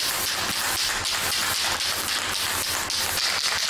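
A hand tool scrapes steadily against a metal cylinder.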